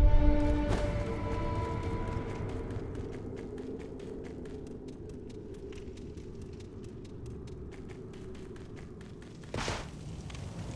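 Footsteps patter quickly over hard ground.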